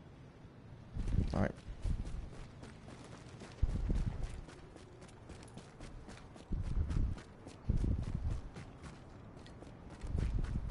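Footsteps crunch on snow.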